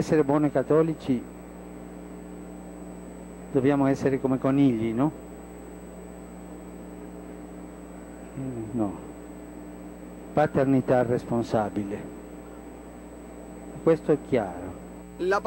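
A steady low hum of an aircraft cabin runs underneath.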